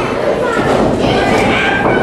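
Feet thud on a wrestling ring mat.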